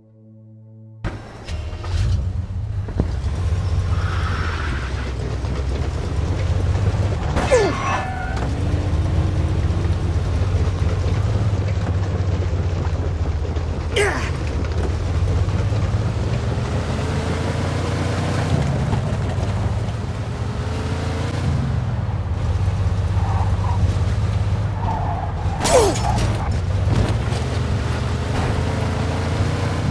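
A car engine rumbles steadily and revs.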